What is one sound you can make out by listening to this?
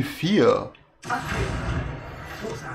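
A spell bursts with a bright magical whoosh.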